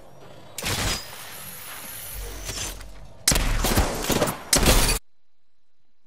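Gunfire rattles in short, rapid bursts.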